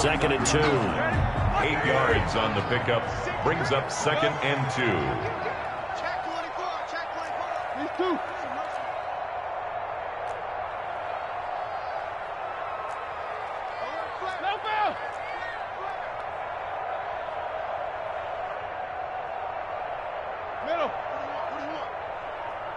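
A large stadium crowd roars steadily, louder at first and then settling to a constant murmur.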